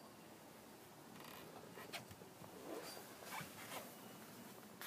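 Clothing rustles as a person shifts on a car seat.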